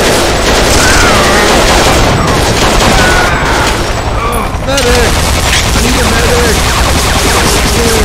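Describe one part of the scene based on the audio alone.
A pistol fires single shots.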